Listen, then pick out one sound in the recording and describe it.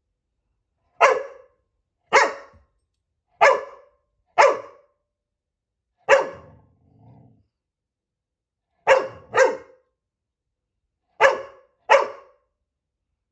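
A dog barks loudly in short, separate barks.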